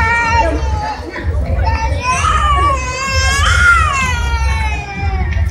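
A large crowd of people chatters and calls out nearby.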